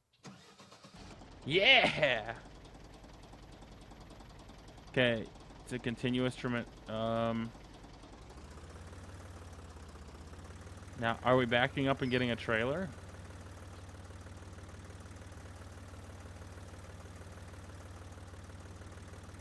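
A tractor engine idles with a low, steady hum.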